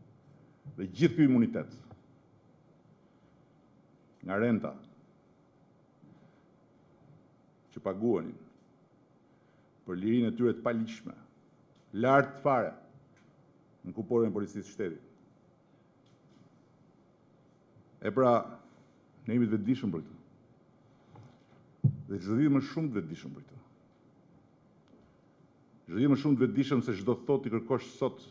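A middle-aged man speaks forcefully into a microphone in a large hall, with long pauses between phrases.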